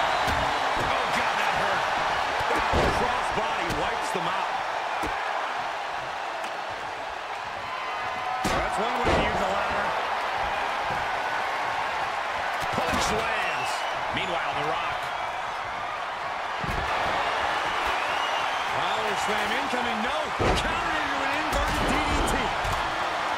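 Bodies slam down onto a wrestling ring with heavy thuds.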